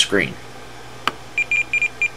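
A knob clicks as it is pressed.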